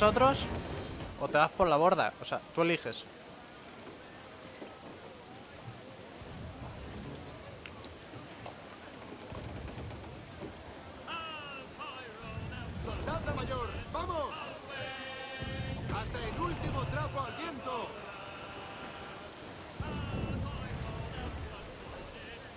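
Ocean waves roll and crash against a ship.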